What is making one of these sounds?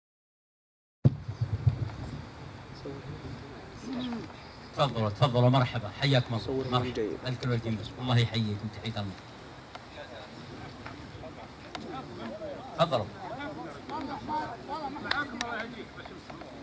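Several men talk and chat nearby.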